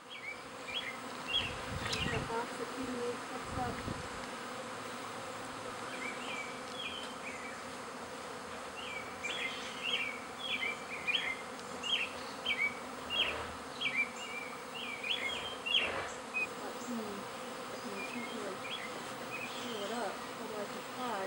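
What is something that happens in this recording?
A honey bee swarm hums as it flies around a tree.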